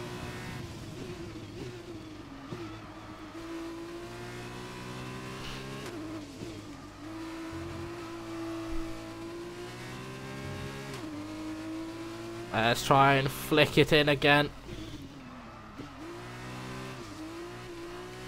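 A racing car engine whines steadily, rising and falling in pitch as the gears change.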